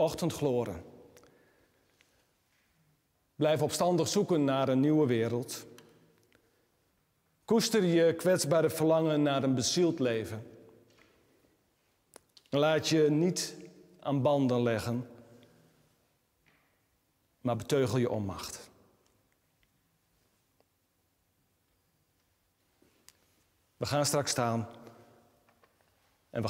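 A man speaks slowly and solemnly in phrases, with pauses between them, in an echoing room.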